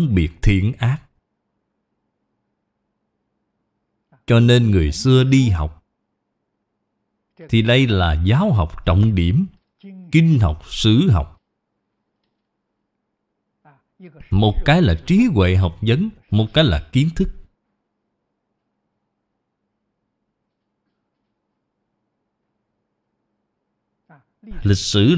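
An elderly man speaks calmly and slowly into a close microphone, pausing between phrases.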